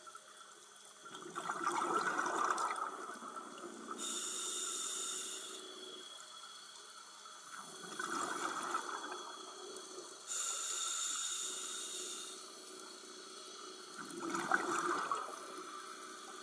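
A scuba diver breathes in loudly through a regulator.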